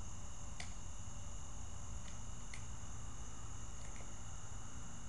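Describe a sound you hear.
Metal parts of a rifle click sharply a few times.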